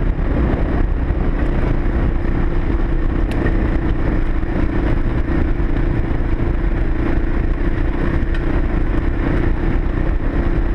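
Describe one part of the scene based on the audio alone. Tyres rumble over a bumpy dirt trail.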